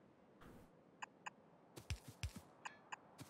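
Short electronic blips and chimes sound from a game.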